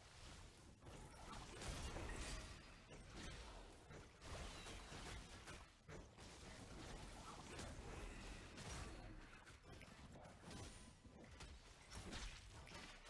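Fantasy battle sound effects clash and crackle with bursts of magic.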